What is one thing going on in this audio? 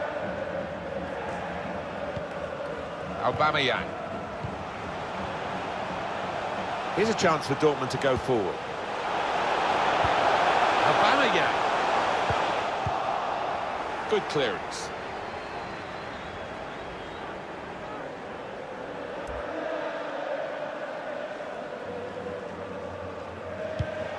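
A large stadium crowd roars steadily, swelling louder for a few seconds and then settling.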